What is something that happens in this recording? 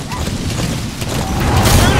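An explosion roars with crackling flames.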